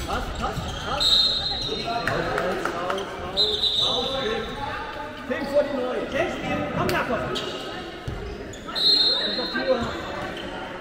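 Sneakers squeak on a court floor in a large echoing hall.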